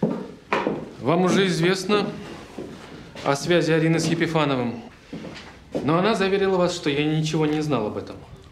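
A man speaks calmly in a quiet room.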